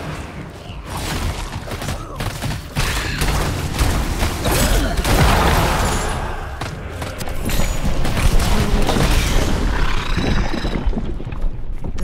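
Magic blasts and impacts crash in quick succession.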